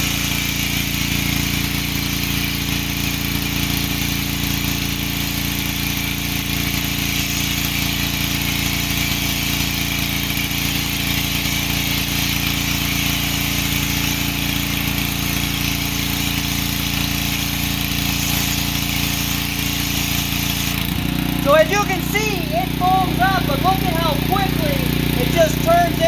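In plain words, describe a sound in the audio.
A pressure washer motor hums steadily.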